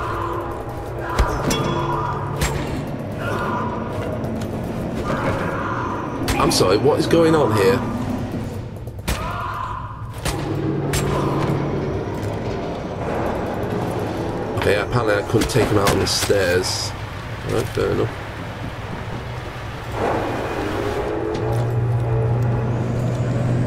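Footsteps clang on a metal staircase.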